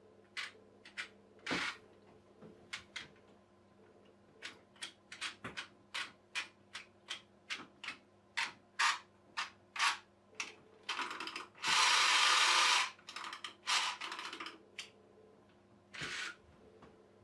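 The key of a clockwork toy boat is wound, ratcheting in sharp clicks.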